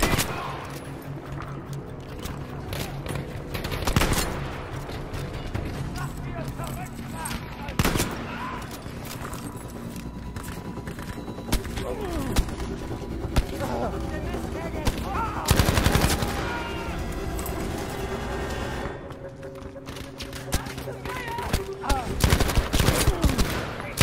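Gunshots fire in bursts with short echoes.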